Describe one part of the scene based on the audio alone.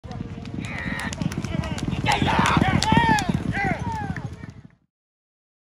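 Horse hooves pound the dirt at a fast gallop.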